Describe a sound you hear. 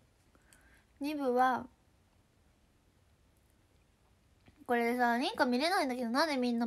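A young woman speaks close up in a high, sing-song voice.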